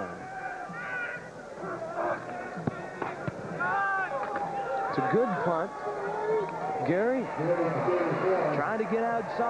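A crowd in a stadium cheers and shouts.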